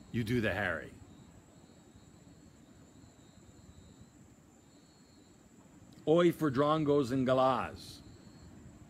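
A middle-aged man speaks loudly and with animation close by, in short bursts.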